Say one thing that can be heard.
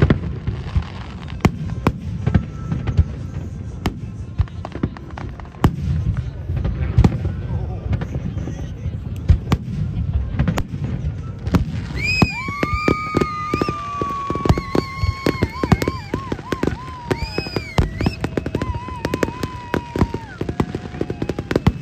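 Fireworks burst and boom in the sky, with loud bangs and crackles.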